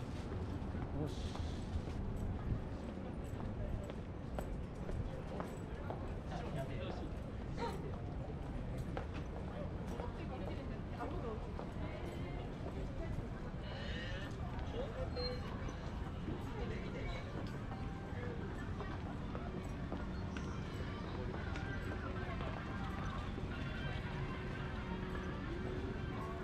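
A busy street murmurs with distant voices and crowd noise.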